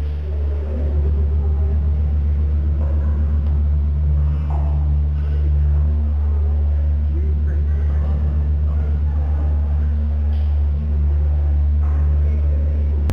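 Young men talk quietly nearby.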